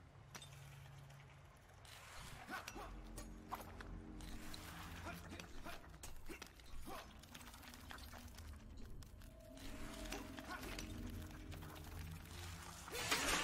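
Sword slashes whoosh and clang in quick bursts.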